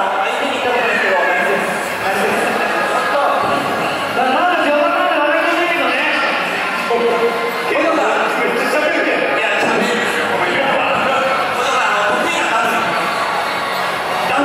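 A man speaks with animation through a microphone over loudspeakers.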